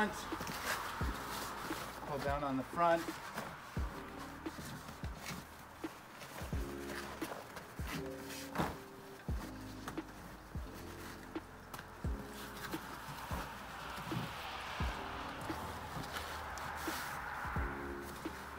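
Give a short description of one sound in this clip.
A fabric car cover rustles as it is pulled over a car.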